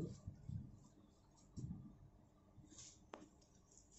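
Fabric rustles as it is handled and spread out.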